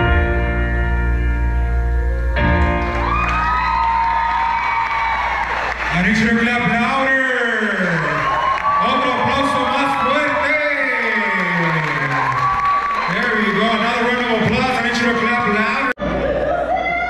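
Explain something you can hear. Loud pop music with singing plays over loudspeakers.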